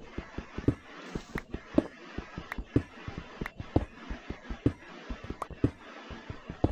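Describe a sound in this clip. A pickaxe chips at stone with quick, repeated knocks.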